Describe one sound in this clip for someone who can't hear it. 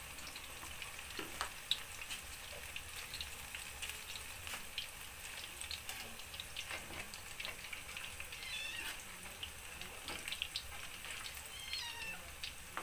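Oil sizzles and crackles as food fries in a pan.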